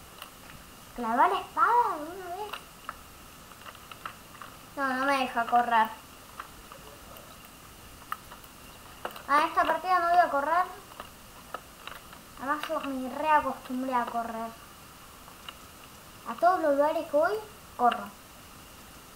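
A child speaks with animation close to a microphone, in short bursts.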